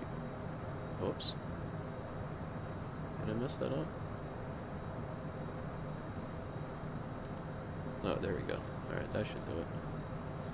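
A man speaks briefly and quietly into a close microphone.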